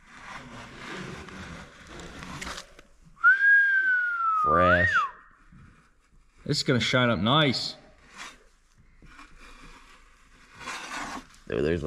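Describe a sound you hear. A block scrapes and rubs against cardboard.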